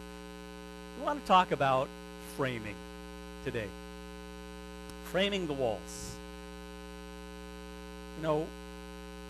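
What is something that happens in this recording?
An older man speaks calmly in short phrases with pauses.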